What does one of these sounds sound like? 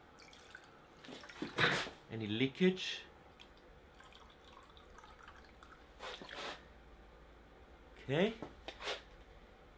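Water pours into a glass tube.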